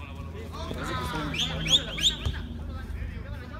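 Young men shout loudly outdoors.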